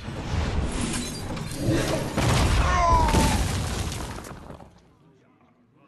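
Loud crashing and whooshing game effects sound as a card creature attacks.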